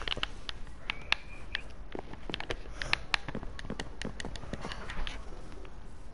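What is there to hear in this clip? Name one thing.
Footsteps tap quickly on wooden blocks.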